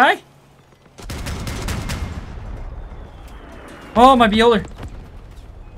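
Heavy guns fire in bursts.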